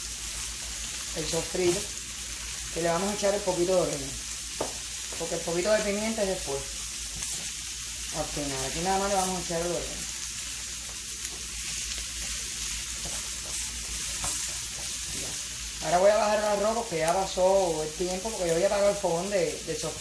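A spatula scrapes and stirs in a frying pan.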